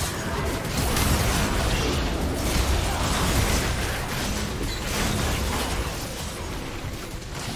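Magic spells crackle and blast in a busy fight.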